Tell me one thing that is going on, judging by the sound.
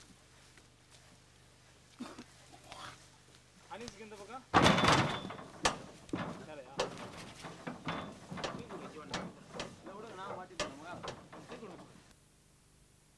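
Men talk and call out to each other nearby.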